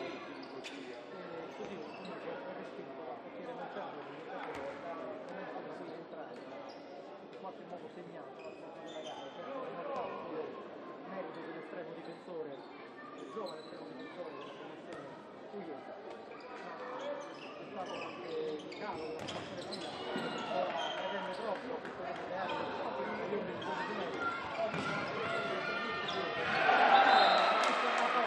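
Sneakers squeak on a hard court, echoing in a large hall.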